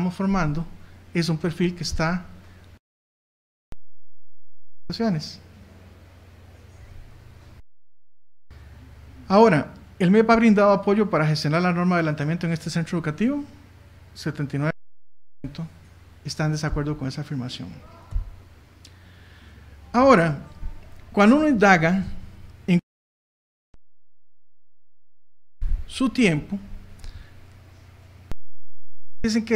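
A man speaks into a microphone in a calm, lecturing tone.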